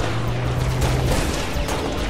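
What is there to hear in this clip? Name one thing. A plasma blast crackles and bursts.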